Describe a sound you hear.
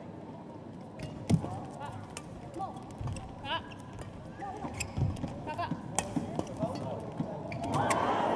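Shuttlecock strikes snap sharply off rackets in a rally.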